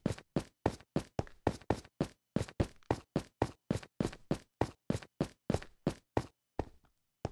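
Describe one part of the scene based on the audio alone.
A pickaxe chips rapidly at stone.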